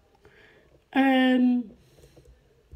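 A woman makes a loud high-pitched exclamation close by.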